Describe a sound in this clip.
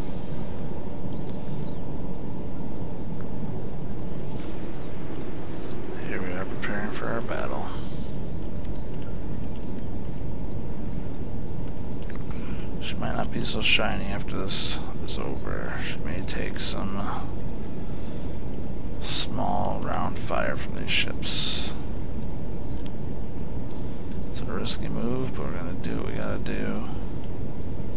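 Sea water rushes past with a steady low rumble.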